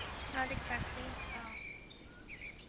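A woman talks casually nearby outdoors.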